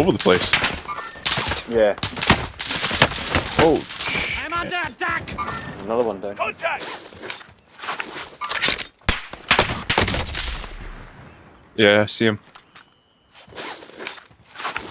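Gunshots crack in quick bursts close by.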